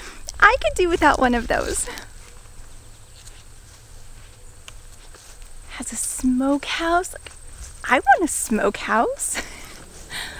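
A young woman talks with excitement close to the microphone.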